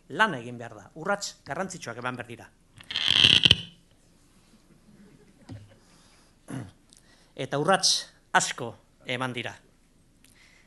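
A middle-aged man speaks over loudspeakers in a large hall, with pauses.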